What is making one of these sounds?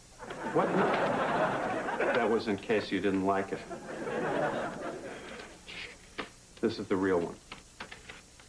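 A man speaks earnestly, close by.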